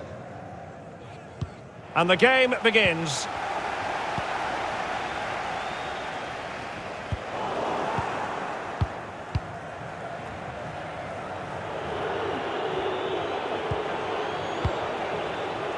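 A stadium crowd roars and murmurs.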